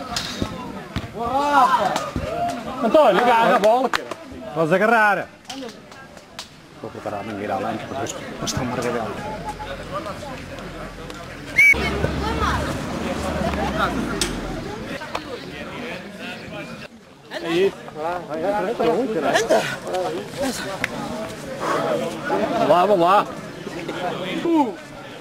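Young men shout to each other outdoors.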